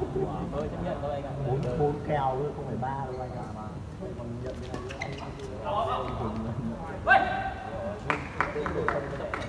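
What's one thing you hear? Young men call out and talk in a large echoing hall.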